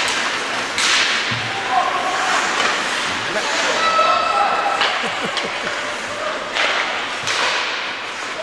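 Ice skates scrape and carve across an ice rink in an echoing arena.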